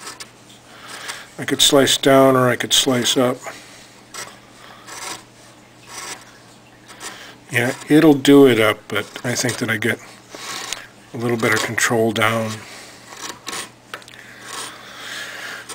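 A chisel scrapes and shaves wood.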